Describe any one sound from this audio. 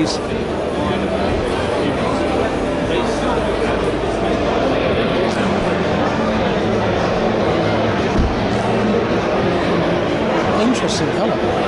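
A crowd of people chatters steadily in a large, echoing hall.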